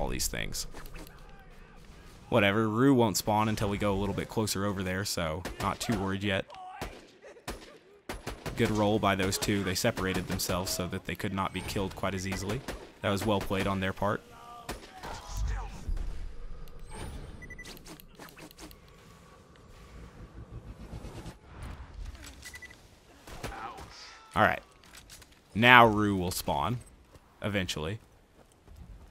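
A rifle fires sharp, loud shots again and again.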